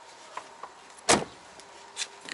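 A car door clunks open.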